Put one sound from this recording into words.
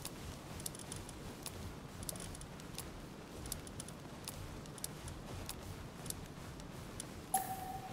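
Short, soft menu clicks sound again and again.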